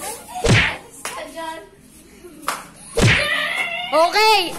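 A boy laughs loudly nearby.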